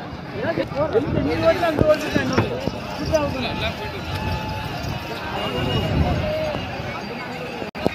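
Men shout excitedly as a bull is wrestled.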